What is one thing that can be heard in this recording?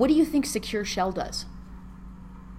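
A young woman speaks briefly and expressively, close to a microphone.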